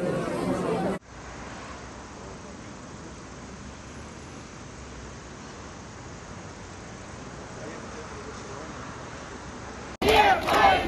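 Traffic hums steadily in the distance.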